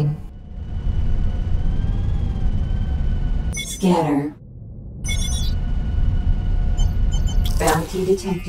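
A warning alarm beeps.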